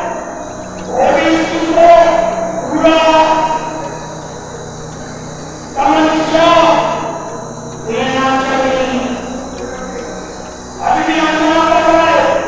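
An elderly man speaks slowly and calmly into a microphone, heard through a loudspeaker.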